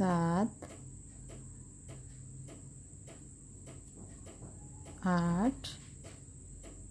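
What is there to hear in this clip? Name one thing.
A crochet hook softly clicks and scrapes against yarn.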